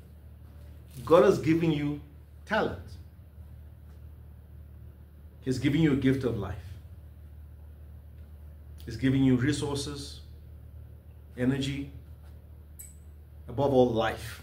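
A man speaks calmly and thoughtfully in short bursts, close by, with pauses between phrases.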